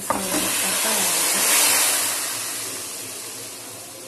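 Water pours and splashes into a pot.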